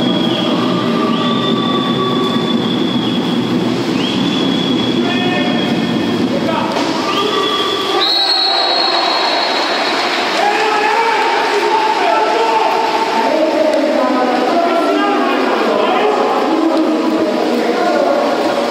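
Water splashes as swimmers thrash and race through a pool.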